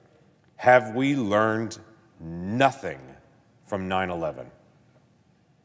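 A middle-aged man speaks forcefully into a microphone.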